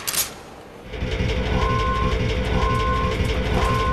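A heavy machine hums and clanks steadily.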